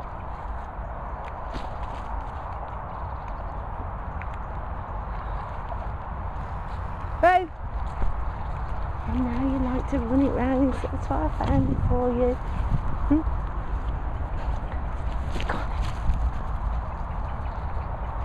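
A dog runs across the grass.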